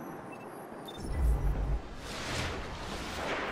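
A loud crackling energy blast bursts.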